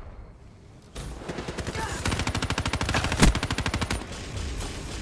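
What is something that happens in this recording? A rifle fires in rapid bursts.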